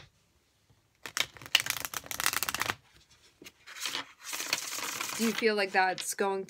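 Playing cards riffle and shuffle with quick crisp rattles.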